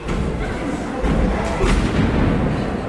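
A wrestler's body thuds onto a wrestling ring canvas.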